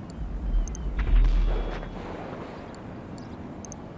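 A menu button clicks.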